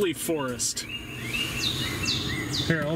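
Birds chirp through car speakers.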